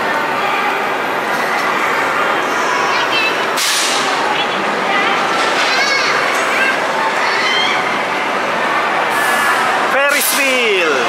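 A crowd murmurs outdoors in the distance.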